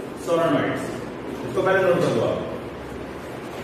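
A man speaks loudly and clearly nearby.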